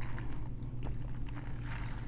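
A woman sips a drink loudly through a straw.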